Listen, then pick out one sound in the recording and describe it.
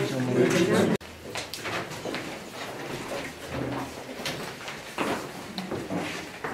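Several adult voices murmur in a crowded room.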